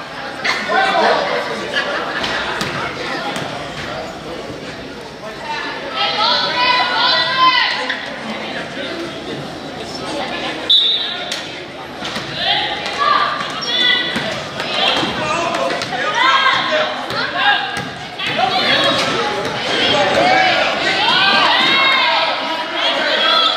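A basketball bounces on the court with hollow thuds.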